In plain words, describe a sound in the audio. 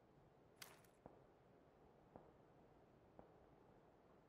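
Footsteps tap slowly on hard stone.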